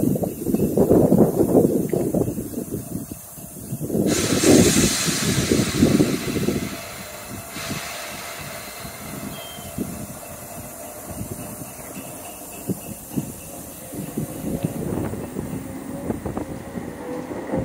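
An electric passenger train rolls past.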